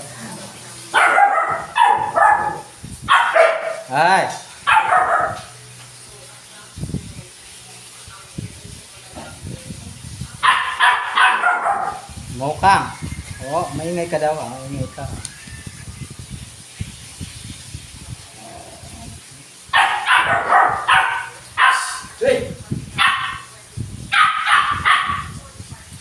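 Dogs bark and yelp nearby.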